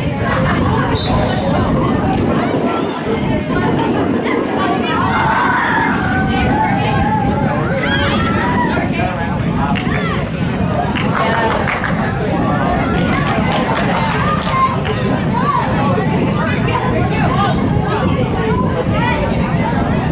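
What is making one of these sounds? Young women shout to each other across a field in the distance.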